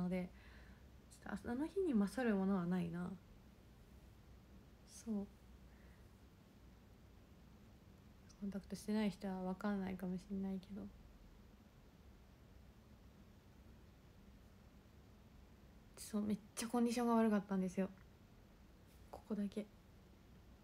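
A young woman speaks softly and calmly close to a microphone, in short bursts.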